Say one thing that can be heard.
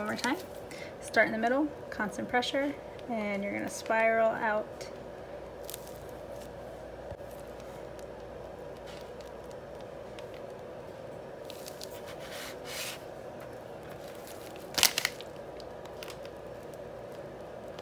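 A piping bag softly squishes as frosting is squeezed out.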